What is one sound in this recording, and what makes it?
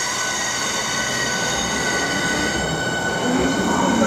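A second train pulls in close by, its motor whining.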